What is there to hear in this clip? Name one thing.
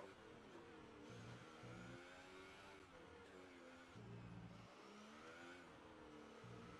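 A racing car engine whines loudly, its pitch rising and falling with gear shifts.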